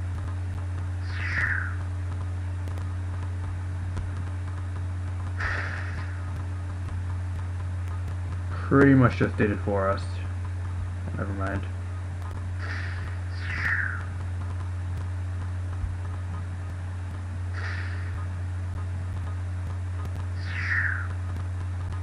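A short falling whoosh plays each time a small figure is flung through the air.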